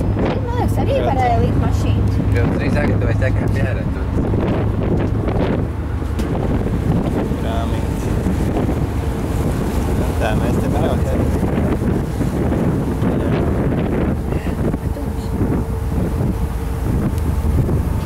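A ferry's engine drones steadily.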